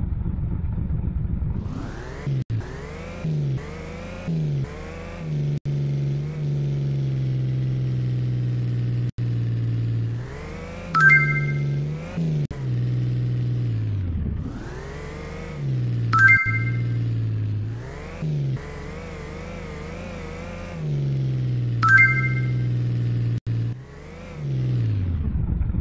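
A car engine drones and revs up and down.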